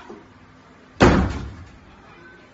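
A door slams shut with a heavy bang.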